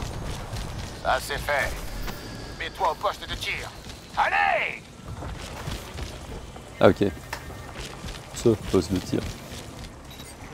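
A young man talks into a headset microphone in bursts.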